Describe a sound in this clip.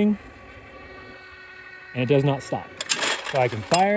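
A clay target thrower snaps and flings a target.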